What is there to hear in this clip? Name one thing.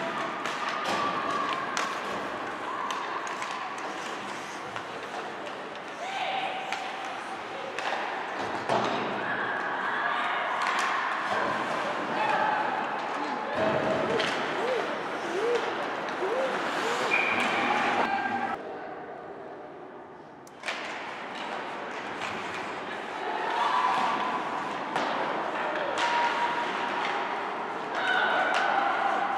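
Young players shout to each other across the rink.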